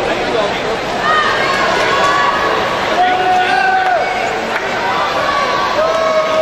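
A crowd of spectators cheers and shouts loudly.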